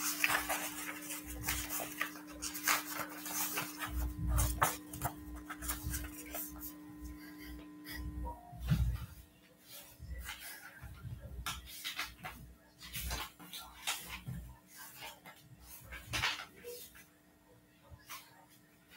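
Clothing rustles and knocks as a person shifts about close by.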